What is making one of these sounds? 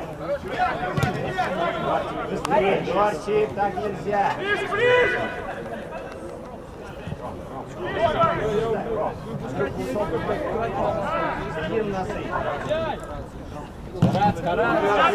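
A football thuds as it is kicked hard.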